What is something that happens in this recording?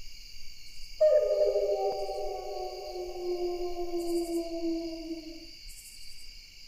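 A wolf howls long and slowly falls in pitch.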